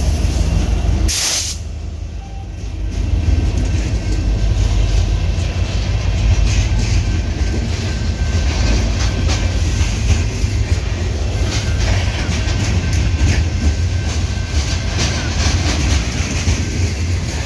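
Freight cars clatter and squeal along the rails.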